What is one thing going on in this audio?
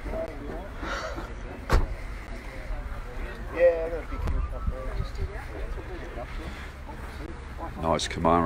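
Men chat nearby in the open air.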